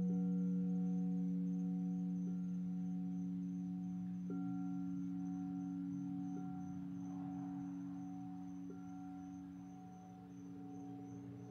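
A singing bowl is struck softly, ringing out again and again.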